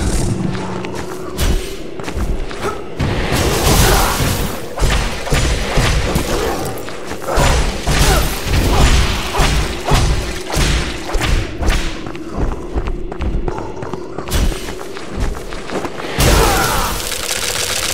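Ice shards burst and crack with a crash.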